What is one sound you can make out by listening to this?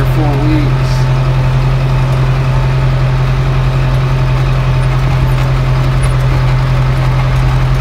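A tractor rumbles and rattles over a bumpy field.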